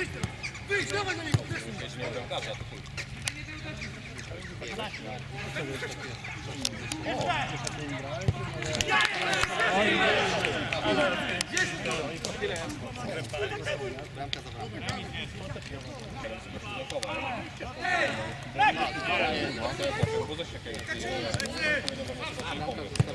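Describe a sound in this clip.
Young men shout to each other outdoors.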